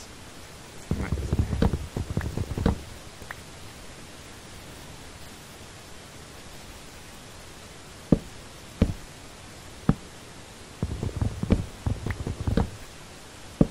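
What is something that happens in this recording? Wooden blocks are chopped with quick, hollow knocks in short bursts.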